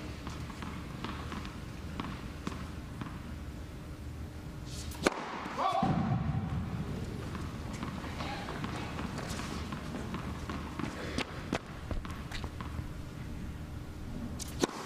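A racket strikes a tennis ball with a sharp pop.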